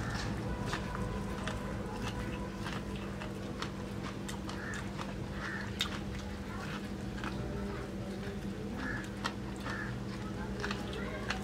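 A man bites and chews corn on the cob with crunching, smacking sounds.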